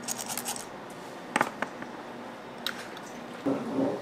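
Glass jars clink and knock on a hard counter.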